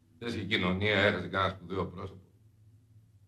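A man speaks calmly and closely.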